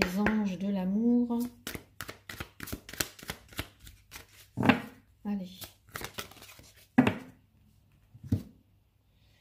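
Playing cards shuffle and flick softly against each other close by.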